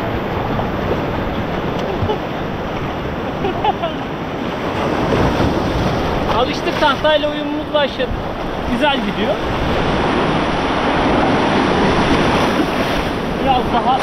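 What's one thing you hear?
Small waves wash and splash steadily around close by.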